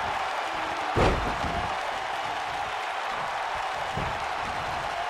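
A heavy body slams onto a wrestling mat.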